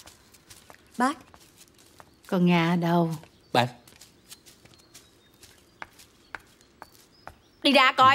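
A young woman speaks with urgency close by.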